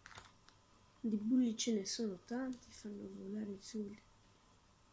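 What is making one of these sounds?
A boy speaks softly and close by.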